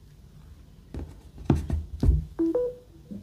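A phone is set down on a hard surface with a few knocks.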